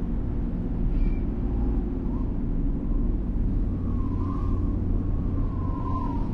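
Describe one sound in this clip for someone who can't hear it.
Wind blows steadily across open hillside.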